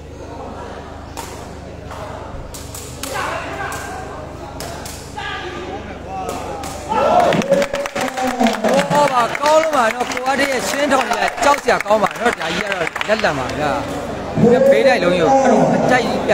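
A large crowd chatters and cheers in a big echoing hall.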